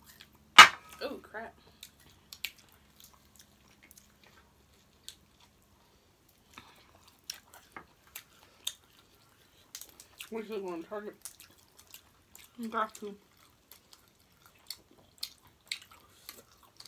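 Young women chew and smack their lips on food up close.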